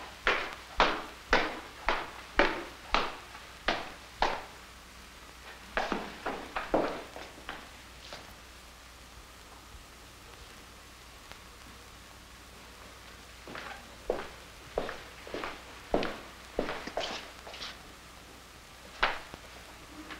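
Footsteps climb slowly up wooden stairs.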